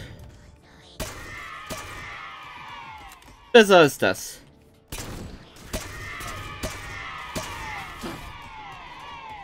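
A pistol fires sharp shots in quick succession.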